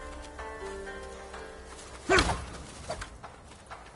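Swords clash with sharp metallic strikes.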